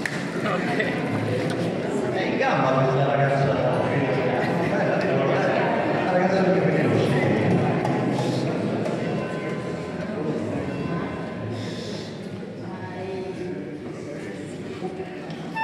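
An elderly man speaks slowly into a microphone, amplified through loudspeakers.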